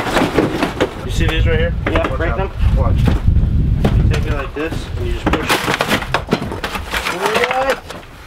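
Wooden boards scrape and knock as a man pulls them loose.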